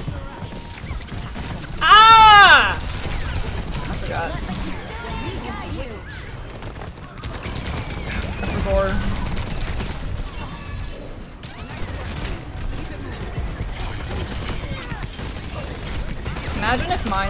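Gunfire and explosions pop and blast from a game.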